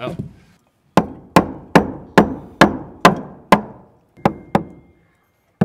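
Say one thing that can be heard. A hammer strikes a nail with sharp, ringing blows in a steady rhythm.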